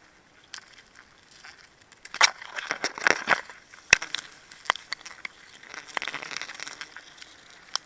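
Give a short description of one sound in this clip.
Leaves rustle and branches scrape as someone climbs a tree close by.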